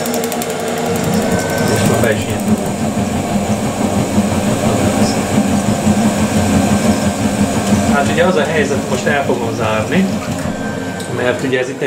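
A gas burner ignites and roars steadily.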